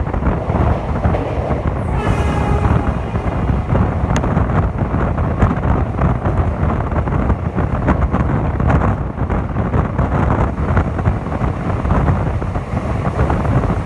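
A freight train's wagons rush past close by.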